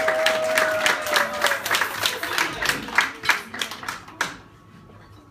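An audience claps in rhythm and the clapping dies away.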